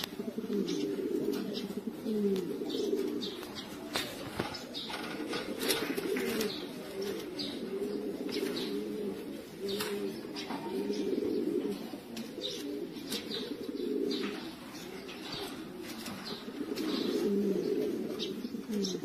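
Pigeons coo steadily close by.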